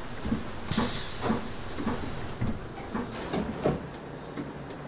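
Bus doors hiss and clunk shut.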